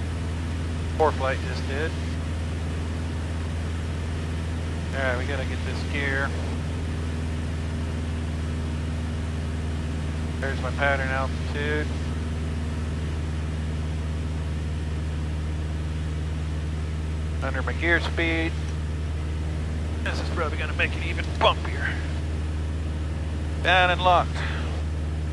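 A middle-aged man speaks calmly in short bursts through a headset microphone.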